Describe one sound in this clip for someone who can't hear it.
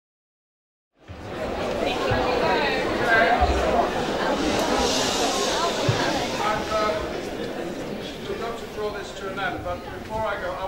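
A young crowd cheers and whoops loudly.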